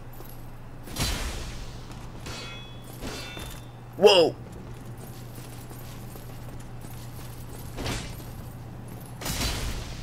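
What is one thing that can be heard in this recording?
A sword clangs against a metal shield.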